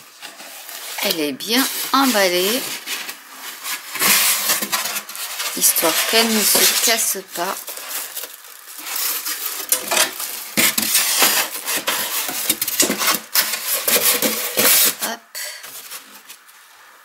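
Styrofoam squeaks and creaks as it is handled.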